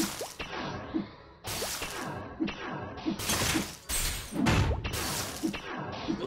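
Game attack effects burst and whoosh in quick, repeated blasts.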